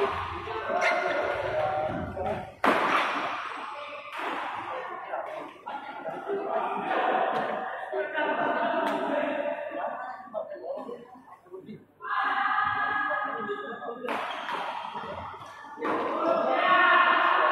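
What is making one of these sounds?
Badminton rackets strike a shuttlecock with sharp pops.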